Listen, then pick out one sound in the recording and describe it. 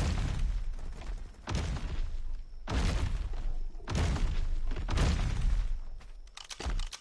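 Heavy footsteps of a large creature thud on the ground.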